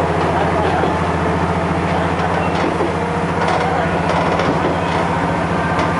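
Train wheels rumble and rattle over the rails.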